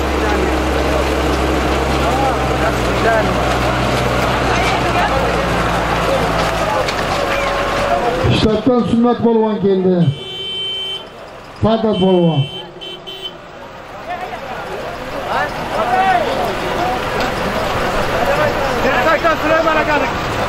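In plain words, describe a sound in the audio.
A crowd of men shouts and cheers outdoors.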